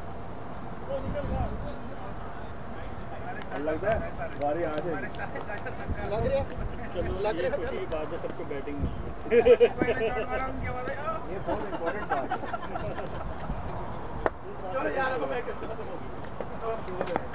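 Several men talk and call out to each other outdoors at a distance.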